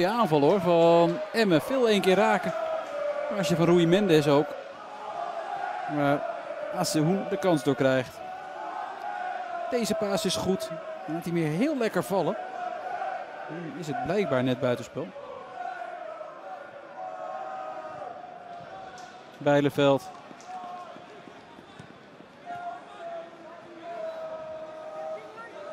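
A crowd in a stadium chants and murmurs in the distance.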